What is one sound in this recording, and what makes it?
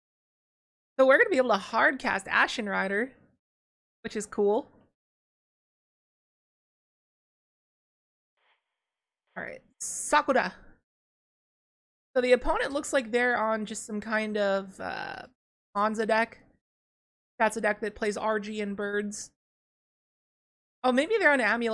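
A young woman talks with animation into a close microphone, in short bursts with pauses.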